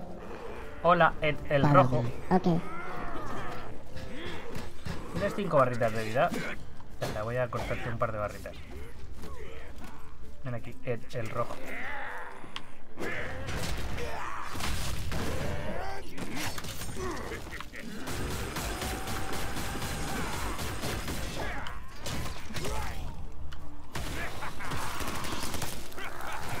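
Magic blasts burst and whoosh in a fast game battle.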